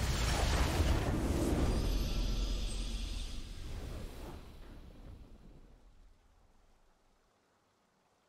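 A triumphant game victory fanfare plays loudly, then fades away.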